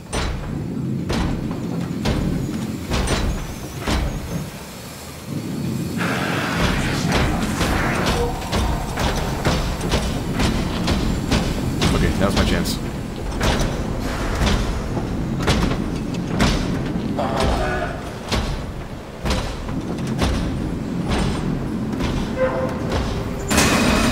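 Footsteps clang steadily on a metal floor.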